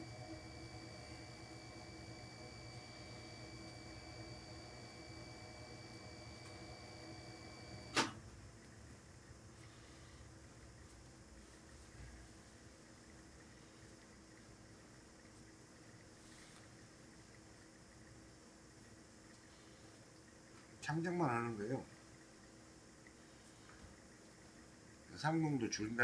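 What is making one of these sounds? Tailor's chalk scrapes softly on cloth.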